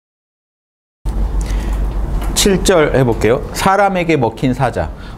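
A man lectures calmly through a microphone.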